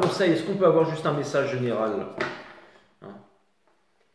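Cards tap down on a wooden table.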